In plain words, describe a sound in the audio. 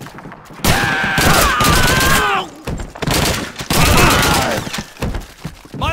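A submachine gun fires in rapid bursts, close by.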